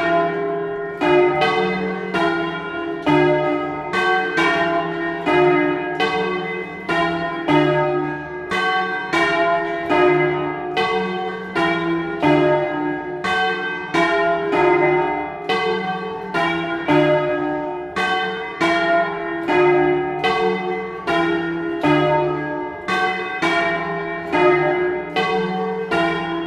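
Several large church bells ring loudly in quick, overlapping peals, each stroke ringing on.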